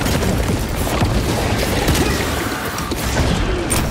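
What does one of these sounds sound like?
A blade hacks into a creature with heavy thuds.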